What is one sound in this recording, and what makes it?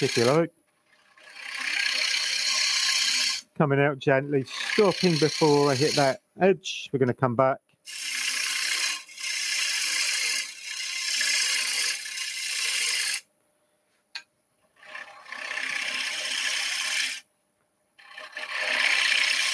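A lathe tool scrapes and hisses against spinning wood.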